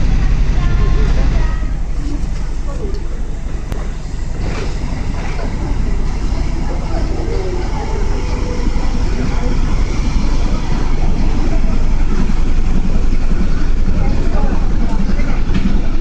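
Water churns and splashes against a boat's hull.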